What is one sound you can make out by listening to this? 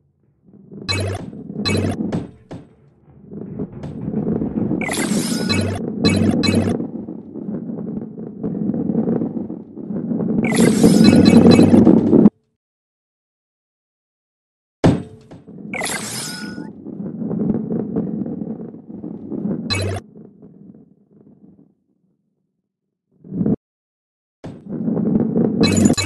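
A heavy ball rolls along a wooden track with a low rumble.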